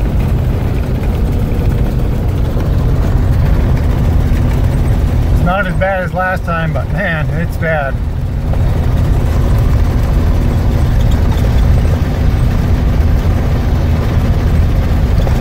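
A vehicle's engine and tyres rumble steadily on the road.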